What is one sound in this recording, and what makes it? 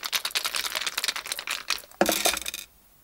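Dice rattle quickly in cups.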